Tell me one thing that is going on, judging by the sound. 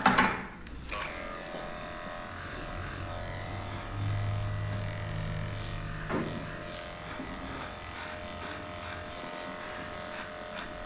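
Electric clippers buzz steadily.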